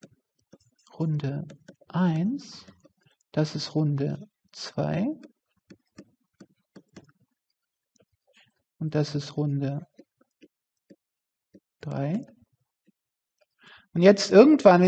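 A middle-aged woman speaks calmly into a close microphone, in short phrases with pauses.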